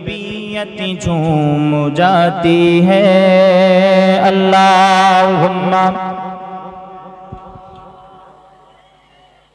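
A man chants in a long, sung voice through a microphone and then fades out.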